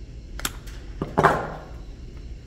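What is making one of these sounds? Pliers clatter down onto a wooden bench.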